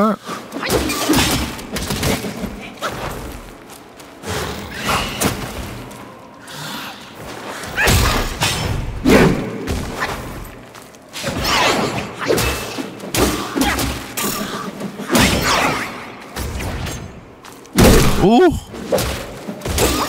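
Swords clash and strike with sharp metallic hits.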